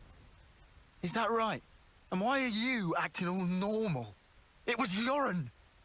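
A young woman asks with surprise, close by.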